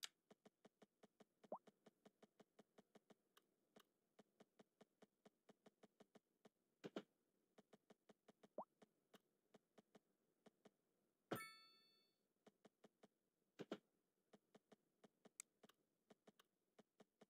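Soft interface clicks tick rapidly and steadily.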